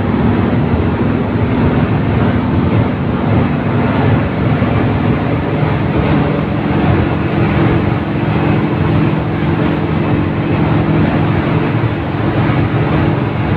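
Rattling panels shake inside the moving bus.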